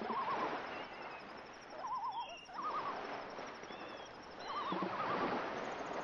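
A whale calls with low, wavering moans underwater.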